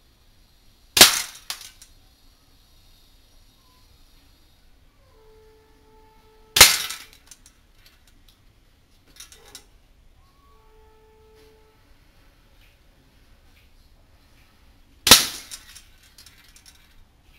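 A hanging metal ornament swings and clangs loudly a few times, ringing briefly after each strike.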